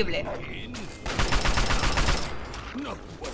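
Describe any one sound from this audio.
Gunfire rattles in a rapid burst.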